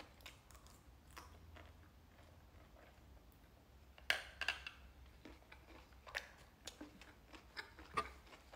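A young man chews and crunches salad close to the microphone.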